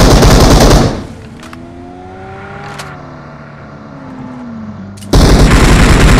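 A car engine revs and hums, rising and falling in pitch.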